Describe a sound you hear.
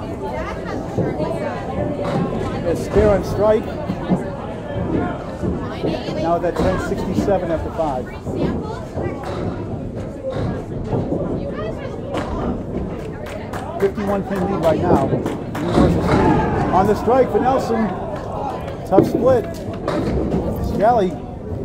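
Men chatter and call out in a busy, echoing hall.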